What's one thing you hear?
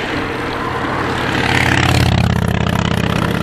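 A motorcycle engine rumbles as it passes close by.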